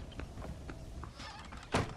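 A wooden door opens with a creak.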